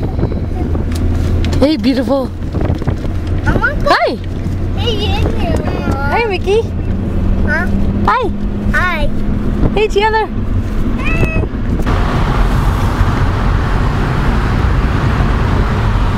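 A car engine hums steadily inside a moving car.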